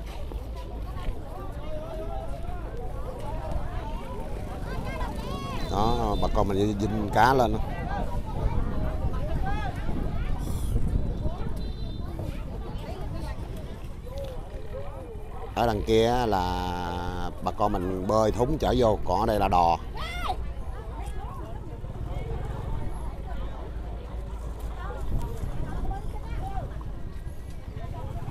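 Men and women talk and call out nearby in a busy open-air crowd.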